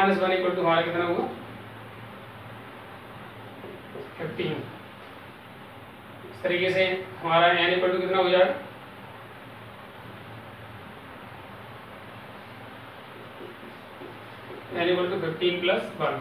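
A man speaks calmly and explains, close by, in short bursts.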